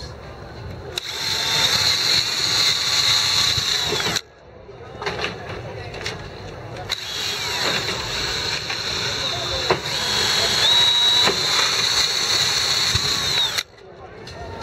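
A cordless drill whirs loudly in bursts.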